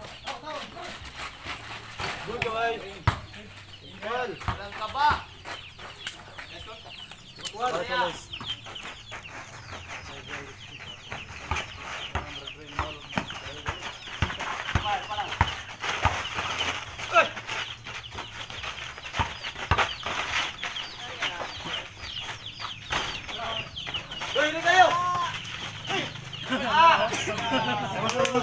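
Young men shout and call out to each other nearby, outdoors.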